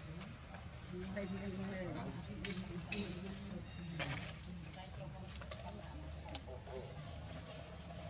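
A baby monkey's feet scrabble on rough stone.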